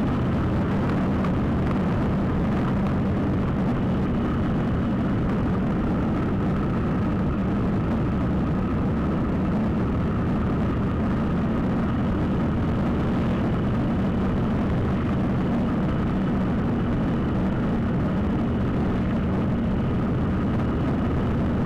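Tyres roll steadily on a wet road.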